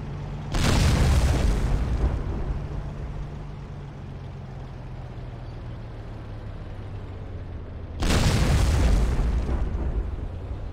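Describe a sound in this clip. A tank cannon fires with a loud boom that rumbles away.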